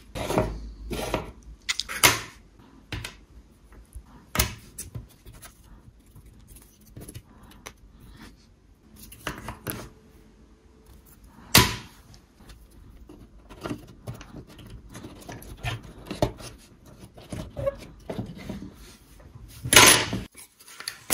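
Small wooden pieces click and knock together as they are fitted by hand.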